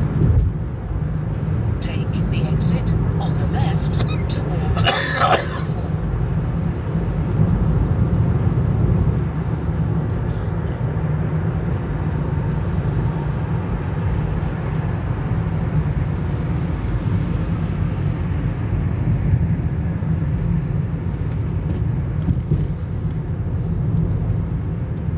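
Tyres roll steadily on the road.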